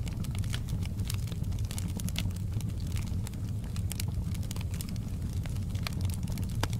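Wood crackles and pops in a fire.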